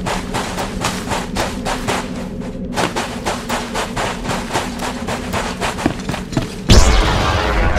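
Footsteps thud quickly and steadily on sand.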